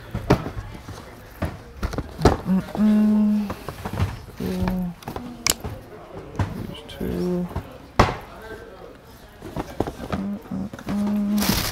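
Sneaker boxes bump and rustle on a counter.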